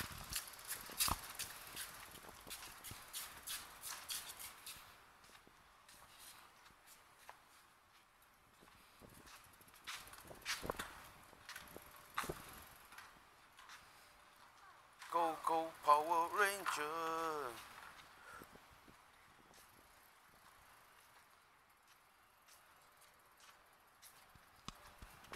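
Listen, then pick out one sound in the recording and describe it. A small bicycle rattles and clicks as it rolls over rough concrete.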